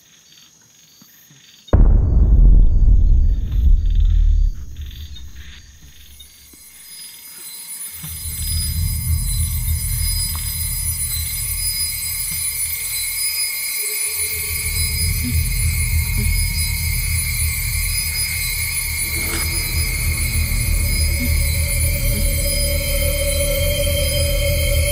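A man breathes heavily and shakily close by.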